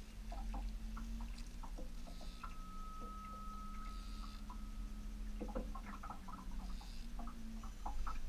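A fishing reel clicks and whirs as line is reeled in.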